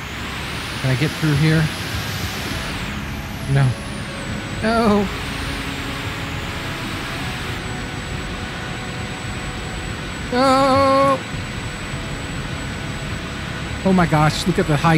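A truck engine rumbles steadily while driving over rough ground.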